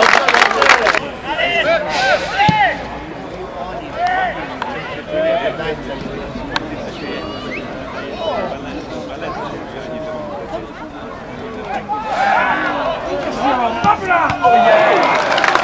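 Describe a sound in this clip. Men shout to each other across a football pitch.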